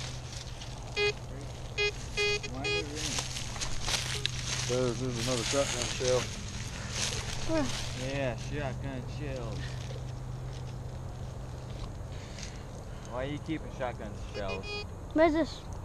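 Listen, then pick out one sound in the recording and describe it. A metal detector beeps in short, pitched tones.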